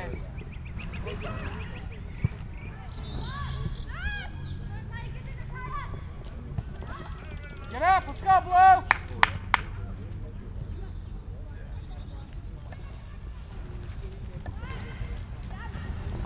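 Young players shout far off across an open field.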